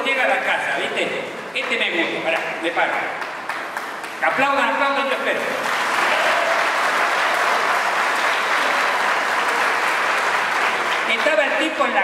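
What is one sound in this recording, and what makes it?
An elderly man speaks into a microphone over loudspeakers, calmly and warmly.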